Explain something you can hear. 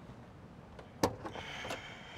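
A truck door latch clicks and the door swings open.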